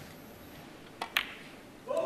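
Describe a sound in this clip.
A cue strikes a snooker ball.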